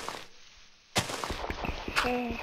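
Dirt crunches as it is dug out.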